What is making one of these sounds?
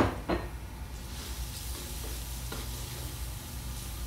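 Garlic sizzles in hot oil.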